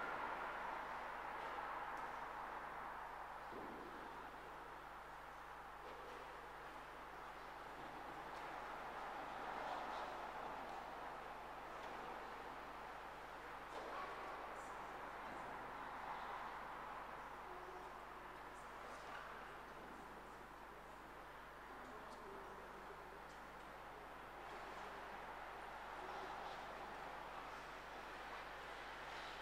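People murmur quietly in a large echoing hall.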